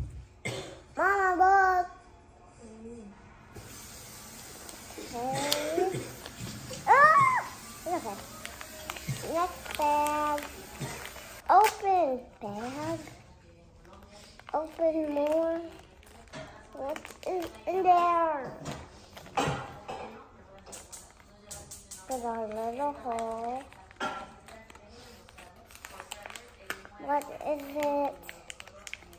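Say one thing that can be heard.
Plastic wrappers crinkle as small hands handle them.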